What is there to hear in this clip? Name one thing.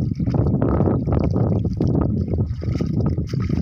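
Water splashes as a man steps into the shallows.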